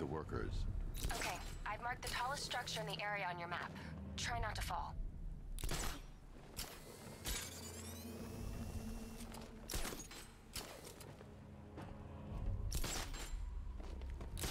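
A grappling gun fires with a sharp whoosh.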